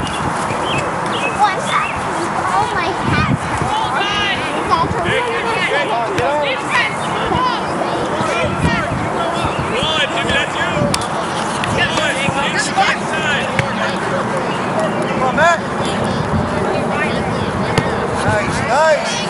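Young players and spectators shout and cheer across an open field.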